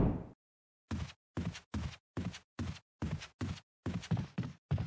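Footsteps thud steadily on a wooden floor.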